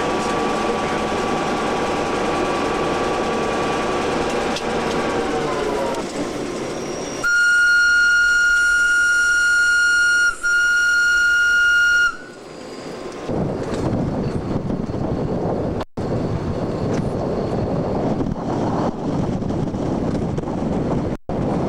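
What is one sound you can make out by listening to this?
Wheels rumble and clatter on rails.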